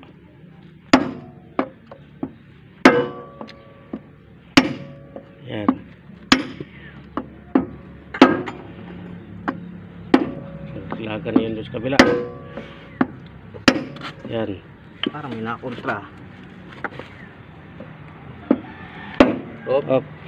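A metal bar knocks sharply against a metal gear hub, again and again.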